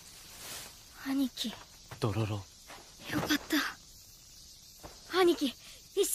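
A young child speaks in a shaky, tearful voice close by.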